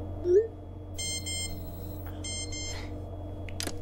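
A phone chimes with short message alerts.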